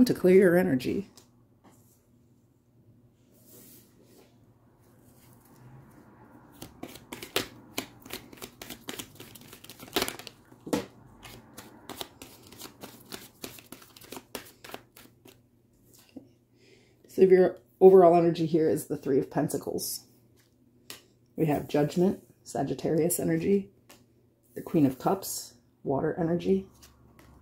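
Playing cards slap and slide softly on a wooden table.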